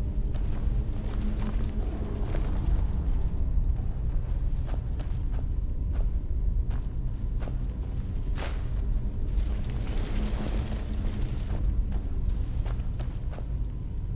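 Footsteps tap on stone and wooden floors.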